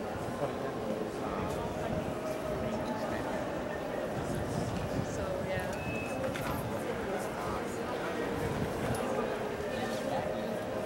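A crowd of visitors murmurs and chatters in a large echoing hall.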